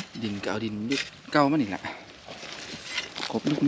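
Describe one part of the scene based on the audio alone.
A shovel scrapes into dirt.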